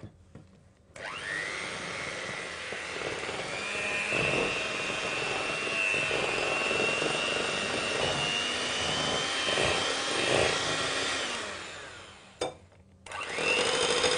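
An electric hand mixer whirs steadily as it beats a batter.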